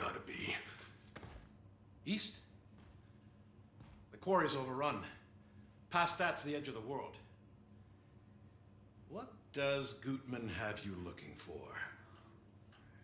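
A man with a deep voice speaks calmly and gruffly up close.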